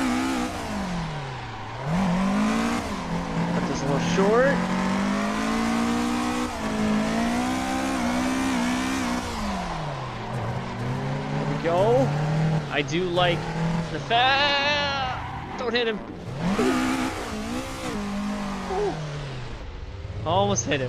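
A car engine revs high and drops again and again.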